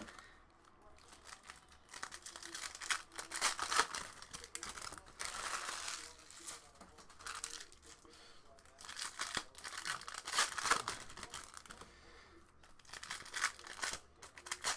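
Plastic card wrappers crinkle and rustle as they are torn open.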